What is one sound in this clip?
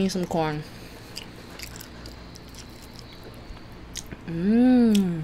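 A young woman chews and smacks her lips close to a microphone.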